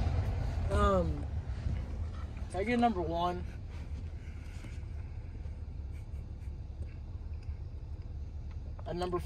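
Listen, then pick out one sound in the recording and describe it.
A man speaks in short bursts up close inside a car.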